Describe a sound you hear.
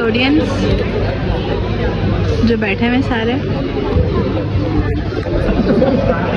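A crowd of young women chatters close by.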